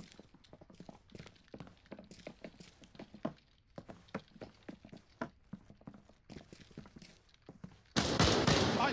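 Footsteps tap softly on a wooden floor.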